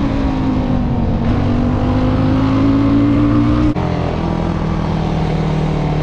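A quad bike engine revs loudly close by, its pitch climbing before dropping as it shifts gear.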